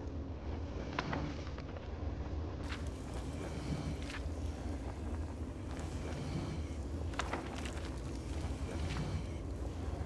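Pages of a book turn with a short papery rustle.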